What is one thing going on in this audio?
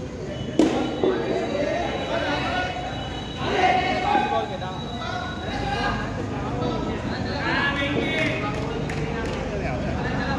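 Men call out and talk loosely across an open outdoor space.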